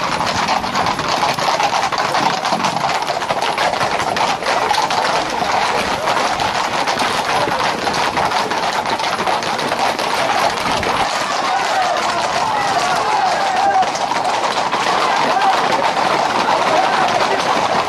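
Horses' hooves clatter on the road.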